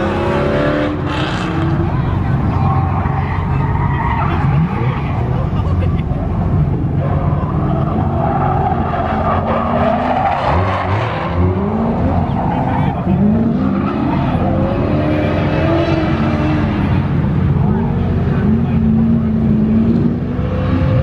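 Tyres squeal on pavement.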